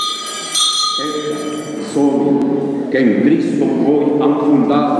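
A man chants in a large, echoing space.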